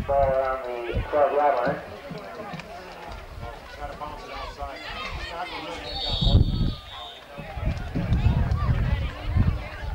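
Young men shout on an open field outdoors.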